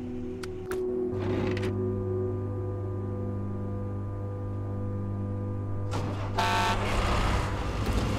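A heavy truck engine idles with a low, steady hum.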